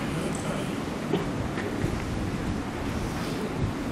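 A chair is dragged and bumps across the floor.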